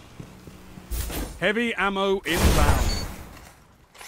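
A heavy gun fires with a deep boom.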